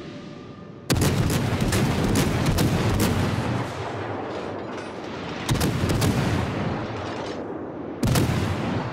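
Heavy naval guns fire in loud booming blasts.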